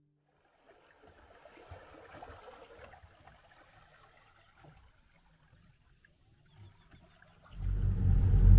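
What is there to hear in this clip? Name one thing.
A small outboard motor drives a dinghy across the water.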